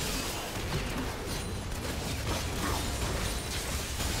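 Game spell effects and combat sounds crackle and clash.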